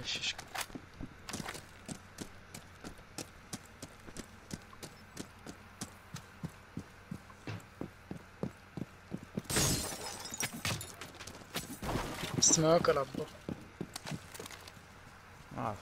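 Footsteps crunch quickly over dirt and gravel.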